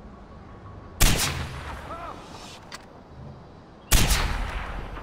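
A sniper rifle fires two loud shots with a sharp echoing crack.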